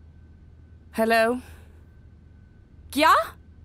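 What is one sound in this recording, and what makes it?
A young woman speaks briefly and calmly into a phone, close by.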